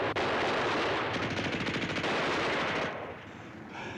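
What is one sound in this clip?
Explosions roar and rumble close by.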